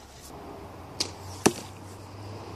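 An arrow thuds sharply into a target.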